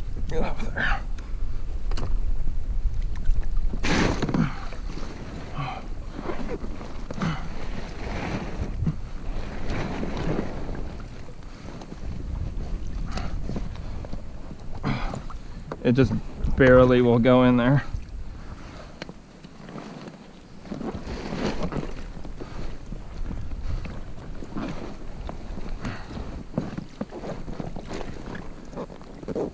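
Water splashes and laps against a kayak.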